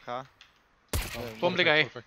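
A pistol fires a single sharp shot.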